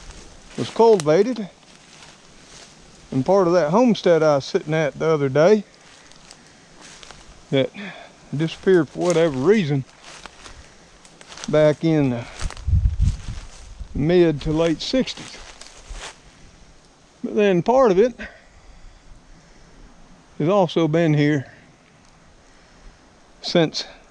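An older man talks calmly in bursts, close to the microphone.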